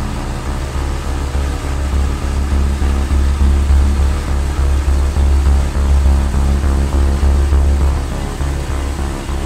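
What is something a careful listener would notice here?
Tyres hum on a paved road.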